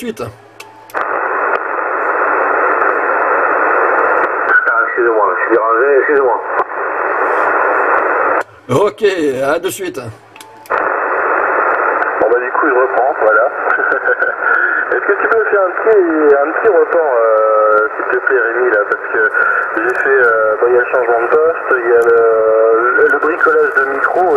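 Static hisses steadily from a radio loudspeaker.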